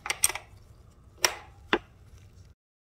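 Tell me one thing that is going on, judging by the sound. A ratchet wrench clicks on a metal nut.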